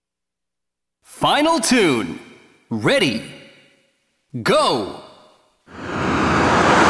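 An arcade game plays bright electronic sound effects in short bursts.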